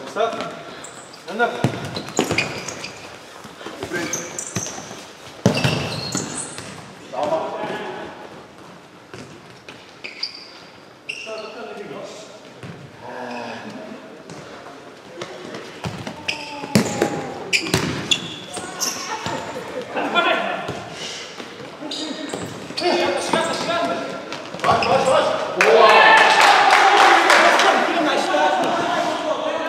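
Sports shoes squeak on the court floor.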